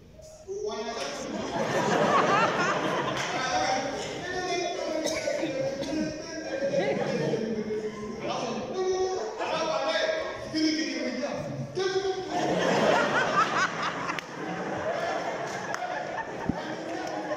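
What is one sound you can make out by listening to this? A man speaks loudly through a microphone and loudspeakers in a large echoing hall.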